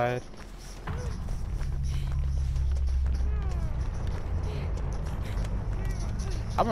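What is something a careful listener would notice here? Footsteps run quickly over dry leaves and twigs.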